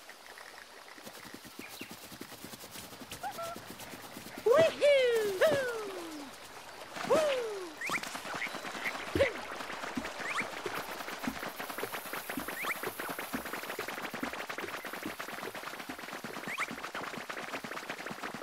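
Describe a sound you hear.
Quick footsteps patter on grass and soft ground.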